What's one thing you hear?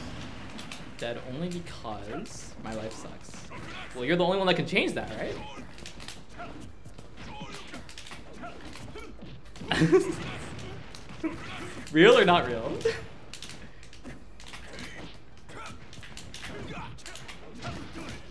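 Game fighters punch and kick with sharp hits.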